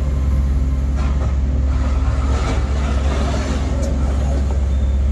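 Gravel rattles and scrapes in an excavator bucket.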